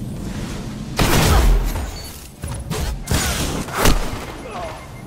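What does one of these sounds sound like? Heavy gunshots ring out in quick bursts.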